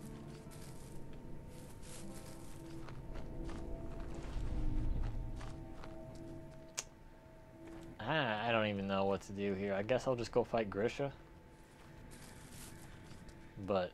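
Footsteps tread softly through grass and undergrowth.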